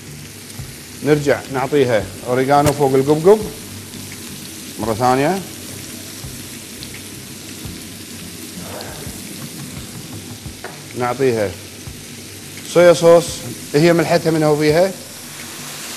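A man talks calmly and clearly into a microphone nearby.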